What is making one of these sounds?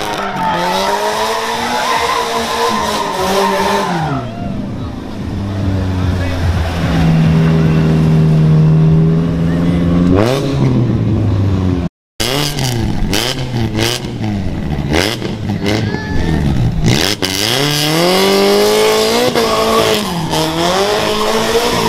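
Tyres screech on pavement.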